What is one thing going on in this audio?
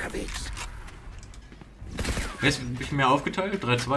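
Gunfire rings out in short bursts.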